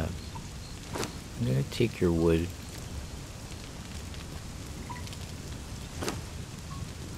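Short clicks sound as a menu opens and items are taken.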